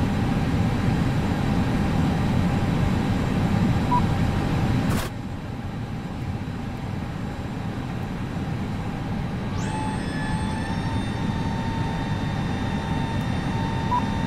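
A low, steady rumble fills an airliner cockpit.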